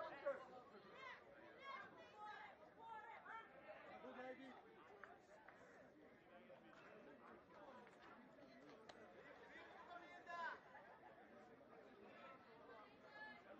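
A crowd murmurs softly outdoors.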